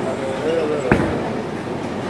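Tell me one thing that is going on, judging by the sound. A bowling ball rumbles down the lane.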